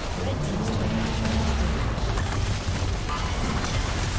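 A tower crumbles with a heavy crash.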